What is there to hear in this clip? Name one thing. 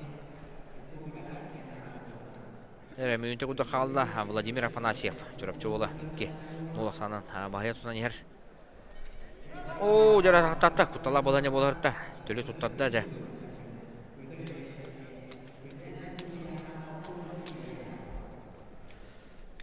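Shoes squeak and scuff on a wrestling mat in a large echoing hall.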